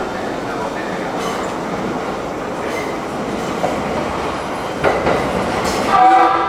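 An electric commuter train rolls along the tracks through a station.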